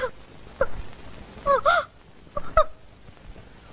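A woman speaks in short, upset bursts.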